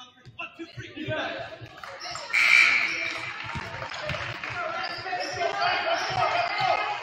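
A crowd cheers and claps in a large echoing gym.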